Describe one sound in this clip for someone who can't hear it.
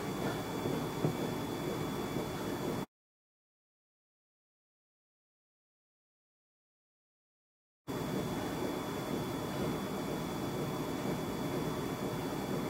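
A treadmill belt whirs and thumps steadily under running feet.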